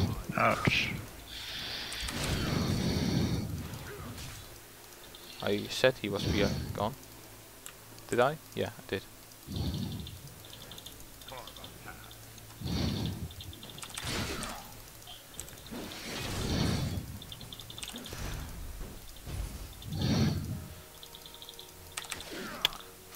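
Magic spells whoosh and blast in a game battle.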